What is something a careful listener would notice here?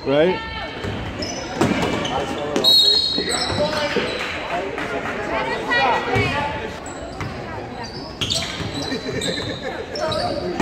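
Spectators in the stands cheer and shout.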